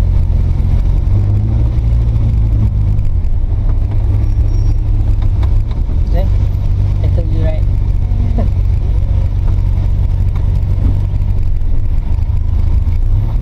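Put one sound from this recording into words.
A vehicle engine hums low and steady from inside the cabin.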